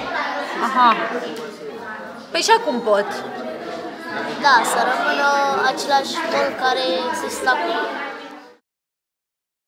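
A young boy answers in a soft voice.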